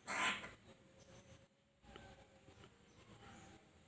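A bird pecks at a soft scrap on a hard floor.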